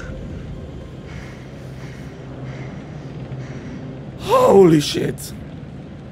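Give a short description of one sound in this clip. A young man gasps and exclaims loudly.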